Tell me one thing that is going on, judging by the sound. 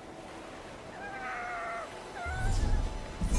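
A fox yips.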